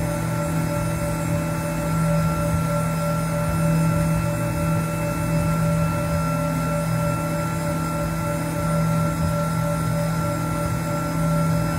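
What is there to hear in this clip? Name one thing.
Coolant sprays and hisses onto the metal.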